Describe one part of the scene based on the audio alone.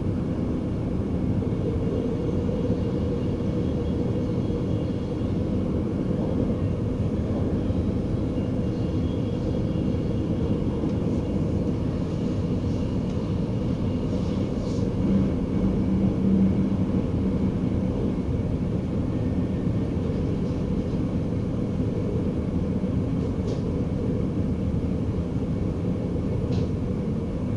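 A train rumbles steadily along the rails from inside the cab.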